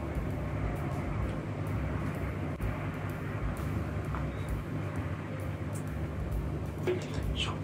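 Beer pours into a glass mug and fizzes.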